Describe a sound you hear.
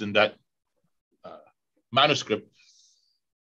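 A middle-aged man speaks calmly over an online call.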